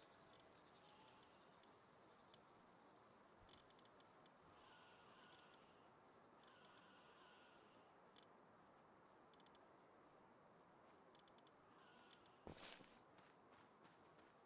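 Soft menu clicks tick quickly.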